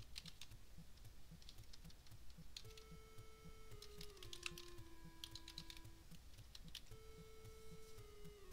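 Chiptune game music plays with a steady thumping beat and a bleeping melody.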